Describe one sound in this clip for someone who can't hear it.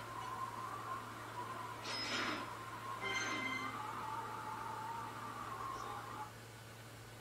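A short video game victory tune plays through a television speaker.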